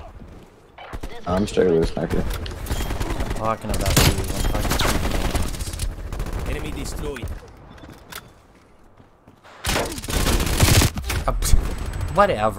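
Rapid gunfire cracks in loud bursts.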